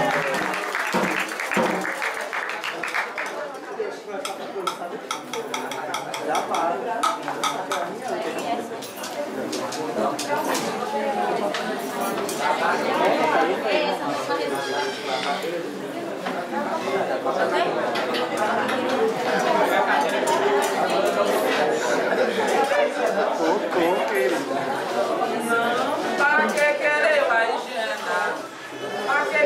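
A group of men and women sing together in an echoing room.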